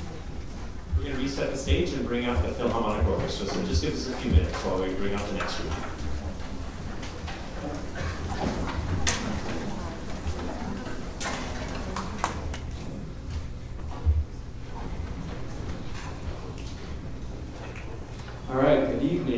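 An orchestra plays softly.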